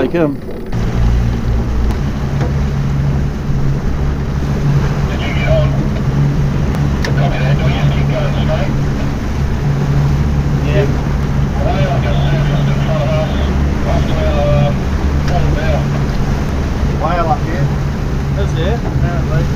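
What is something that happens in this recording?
Water rushes and splashes behind a moving boat.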